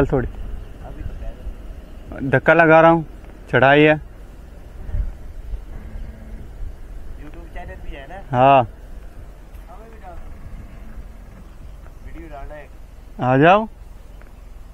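A young man speaks in short, loud bursts close to a microphone.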